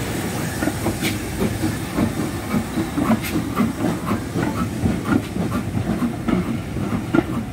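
A steam locomotive chuffs heavily as it passes close by.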